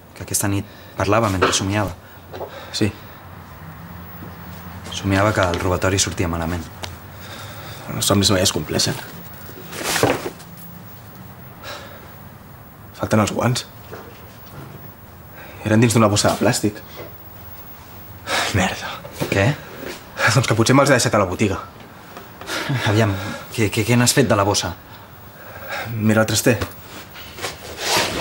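A young man speaks calmly and questioningly, close by.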